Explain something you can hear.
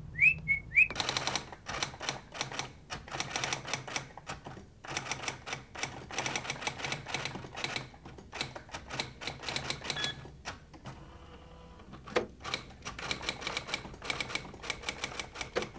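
A typewriter clatters with quick, steady keystrokes.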